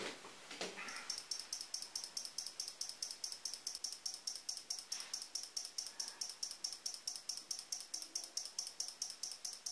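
A small relay clicks in a fast, even rhythm.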